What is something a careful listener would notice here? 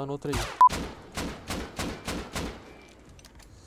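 A gun fires a rapid burst of shots indoors.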